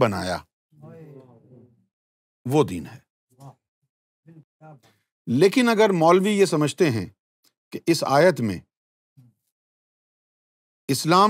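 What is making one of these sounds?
An elderly man speaks calmly and with emphasis into a close microphone.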